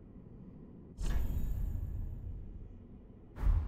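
A soft chime rings and fades.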